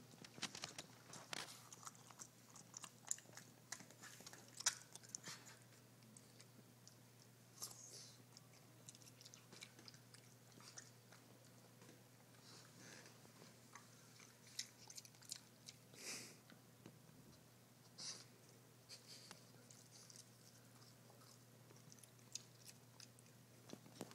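A dog sniffs loudly.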